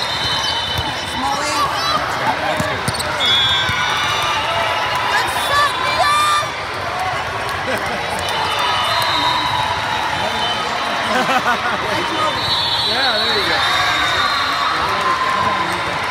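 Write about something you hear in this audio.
A volleyball is struck with a slap.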